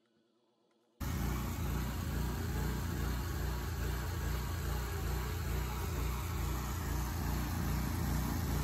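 A crane's engine hums steadily close by.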